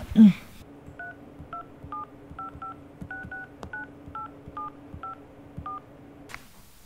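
A phone's keypad beeps in short tones as buttons are pressed.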